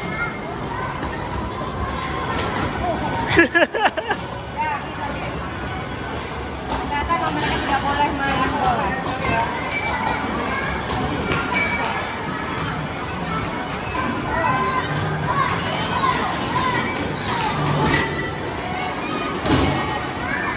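Arcade machines play busy electronic music and jingles nearby.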